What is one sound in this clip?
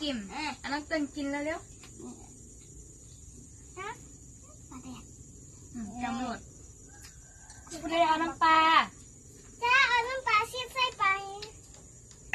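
Young children talk and chatter close by.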